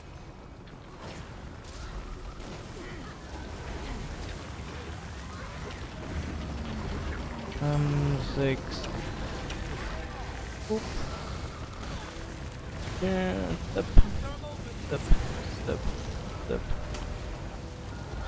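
Game sound effects of spells and hits play.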